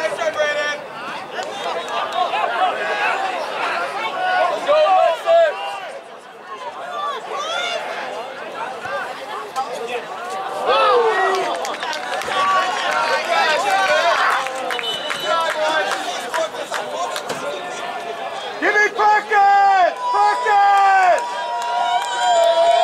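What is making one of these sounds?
Players call out to each other across the field.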